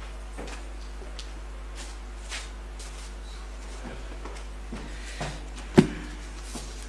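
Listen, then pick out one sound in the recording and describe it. A microphone thumps as a hand adjusts it.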